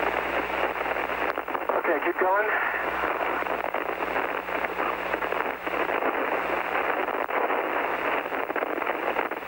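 A man speaks over a crackling, hissing radio link.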